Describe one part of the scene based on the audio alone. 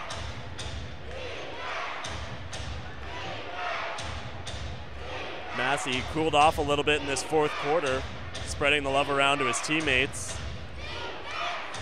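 A crowd murmurs in a large indoor arena.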